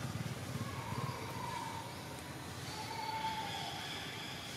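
A baby monkey squeals softly.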